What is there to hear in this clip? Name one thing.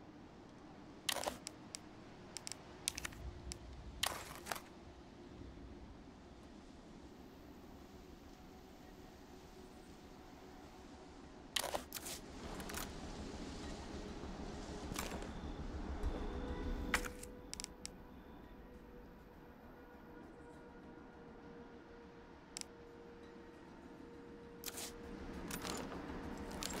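Short menu clicks sound now and then.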